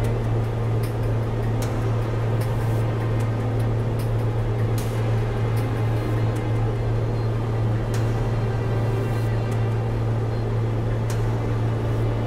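A propeller engine drones steadily at a low pitch.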